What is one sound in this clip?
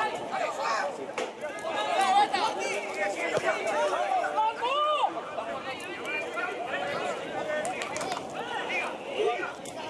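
Several men shout and call out across an open outdoor pitch.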